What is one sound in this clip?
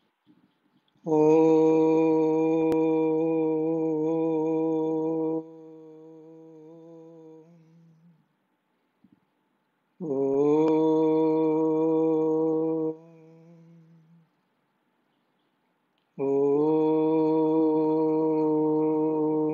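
A middle-aged man chants long sustained notes in a deep voice, close to a microphone.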